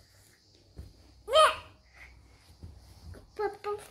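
A toddler giggles close by.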